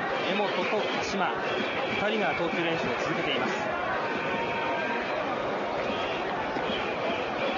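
A large crowd murmurs steadily in the distance outdoors.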